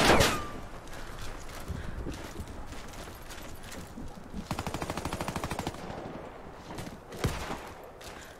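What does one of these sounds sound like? A sniper rifle fires a loud single shot.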